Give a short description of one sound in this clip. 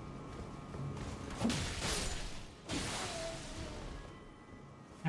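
A heavy blade swings and slashes through flesh with a whoosh.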